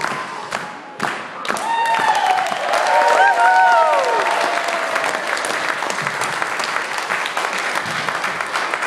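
Children's feet stamp and shuffle on a wooden floor.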